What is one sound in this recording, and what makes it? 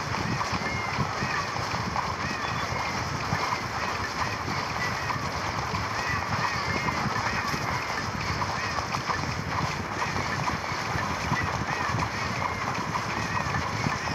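Game battle sounds of rapid hits and zaps clatter constantly.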